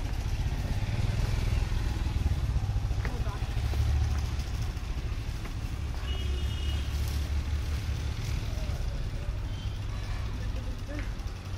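A motorbike engine rumbles steadily and slowly moves away.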